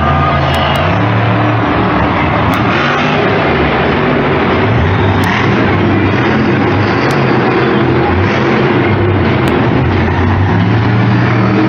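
A monster truck engine roars loudly, revving up and down.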